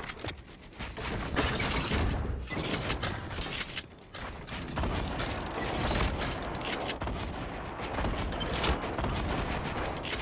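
Footsteps patter on wooden ramps.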